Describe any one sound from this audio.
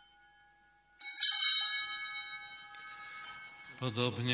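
Small bells jingle brightly.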